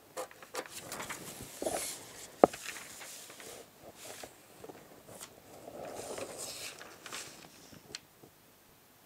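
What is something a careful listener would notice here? Paper rustles and slides under a hand.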